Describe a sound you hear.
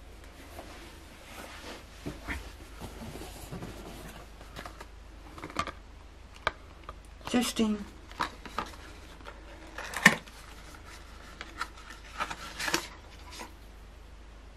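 A woman speaks quietly and close by.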